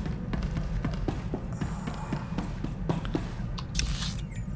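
Footsteps clank quickly on a metal floor.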